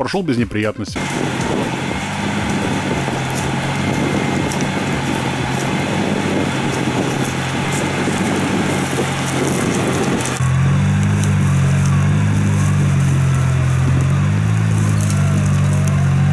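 A vehicle engine labours and revs steadily nearby.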